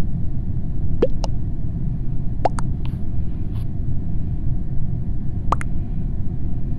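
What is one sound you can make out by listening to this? Short electronic chat notification blips sound as new messages arrive.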